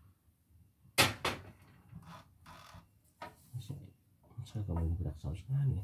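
Plastic parts of a machine click and rattle as a knob is turned by hand.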